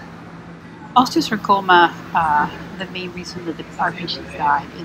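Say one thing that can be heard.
A woman speaks calmly through a loudspeaker.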